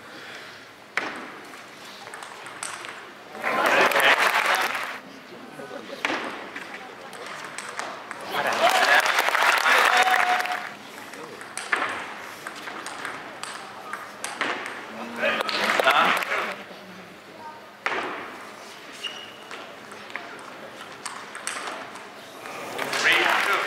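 A table tennis ball clicks rapidly back and forth off paddles and the table.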